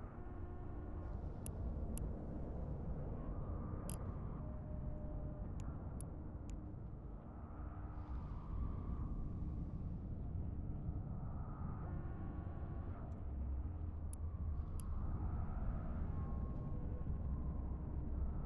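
A deep spaceship engine rumble drones steadily.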